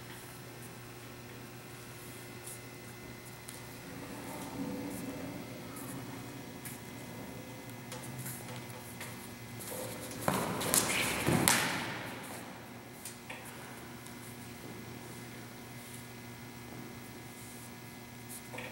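Sneakers squeak and shuffle on a hard floor.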